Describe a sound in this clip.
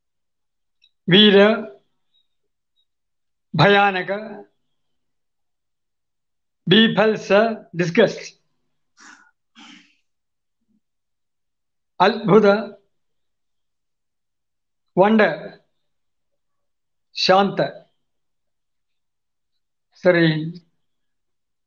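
A man speaks expressively in short bursts close to a microphone, with pauses between phrases.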